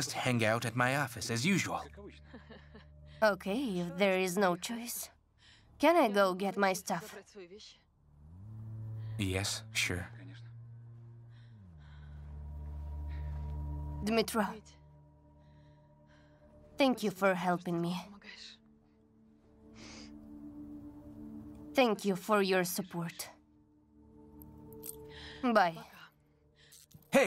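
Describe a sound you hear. A woman speaks quietly and earnestly close by.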